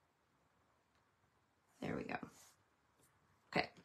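A small card is set down on a paper-covered surface with a soft tap.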